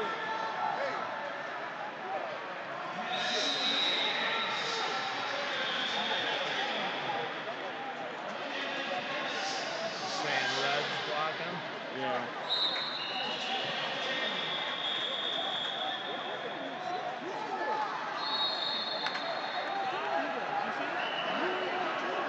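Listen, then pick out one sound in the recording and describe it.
A crowd chatters throughout a large echoing hall.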